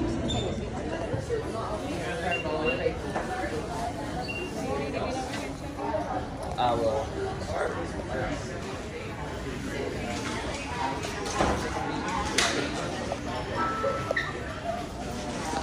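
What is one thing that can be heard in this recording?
A crowd of people chatters nearby in a large, echoing hall.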